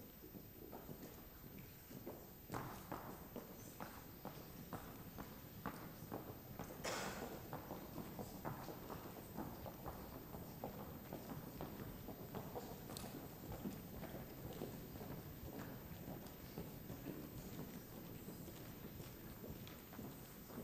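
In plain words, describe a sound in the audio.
Footsteps knock on a wooden stage in a large echoing hall.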